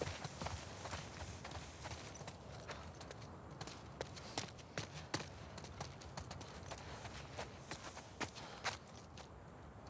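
Footsteps crunch through wet grass and gravel.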